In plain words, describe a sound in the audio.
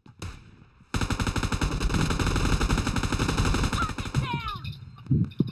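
A machine gun fires in a long rapid burst.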